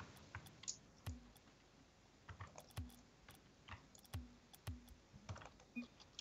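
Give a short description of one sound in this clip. Short game menu clicks and thumps sound as items scroll by.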